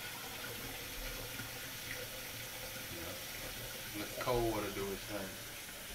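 Water runs from a tap into a container.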